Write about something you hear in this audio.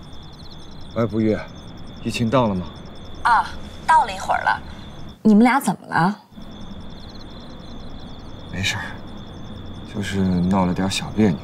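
A young man talks calmly on a phone, close by.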